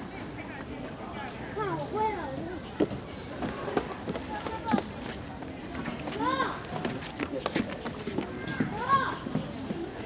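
Footsteps thump on wooden boards.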